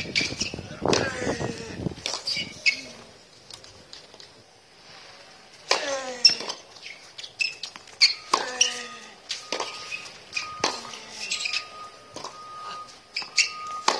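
Shoes squeak on a hard court.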